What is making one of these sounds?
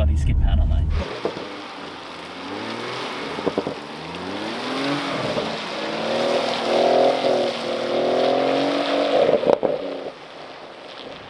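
A car engine revs hard, rising and falling in pitch as the car slides.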